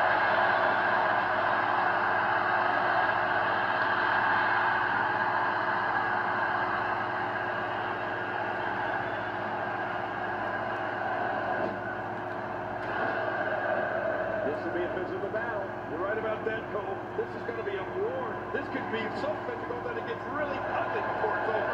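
A crowd cheers and roars steadily through a television speaker.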